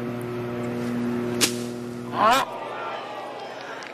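A golf club swishes through thick grass.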